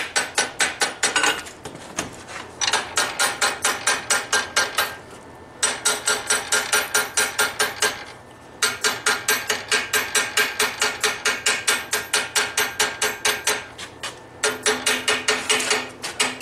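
A hammer strikes metal on an anvil in quick, ringing blows, with short pauses between bursts.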